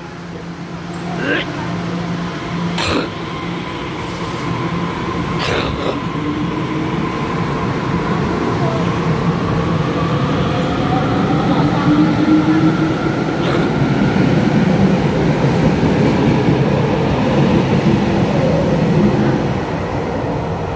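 A train rumbles past with a gliding whine in an echoing hall.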